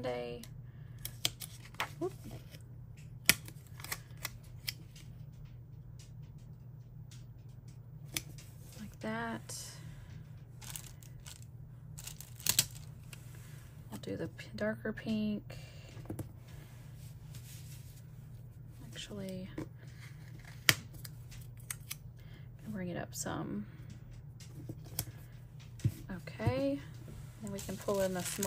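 Sheets of paper rustle and tap as they are handled.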